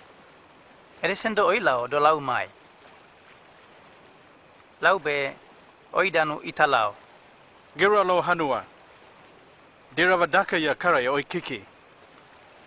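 A man speaks calmly and earnestly, close by.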